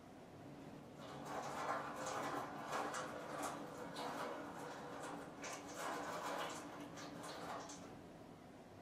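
Water pours in a thin stream into a small cup.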